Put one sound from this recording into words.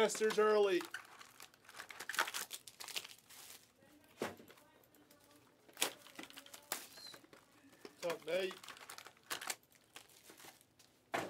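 Packaging crinkles and rustles as it is handled.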